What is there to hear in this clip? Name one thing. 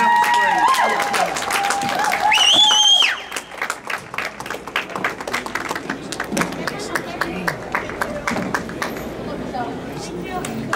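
Roller skate wheels roll and clatter across a wooden floor in a large echoing hall.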